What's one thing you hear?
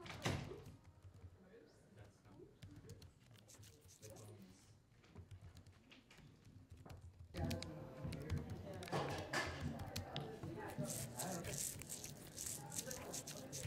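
Fingers tap quickly on a laptop keyboard.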